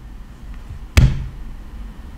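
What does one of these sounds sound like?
A cup knocks down onto a table.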